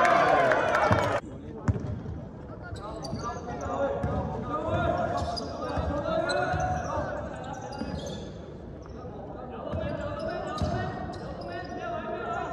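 A basketball thuds on the floor.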